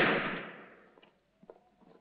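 A pistol shot rings out and echoes away.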